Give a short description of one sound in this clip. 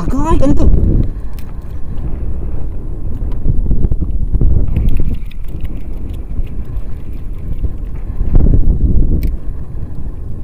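Wind buffets the microphone outdoors on open sea.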